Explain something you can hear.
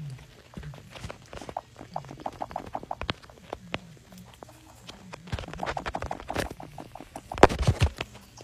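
Blocks snap into place with short, quick clicks.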